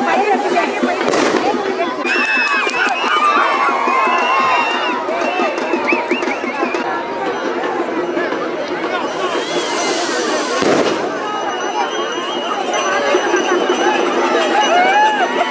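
A large outdoor crowd of men shouts and cheers loudly.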